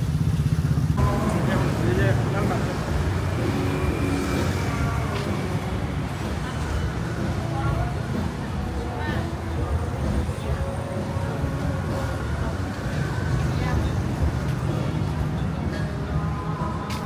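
Motorbikes and cars rumble along a busy street outdoors.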